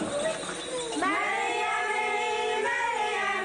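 Voices sing together in a sustained tune.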